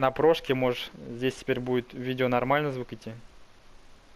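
A man speaks in a low voice.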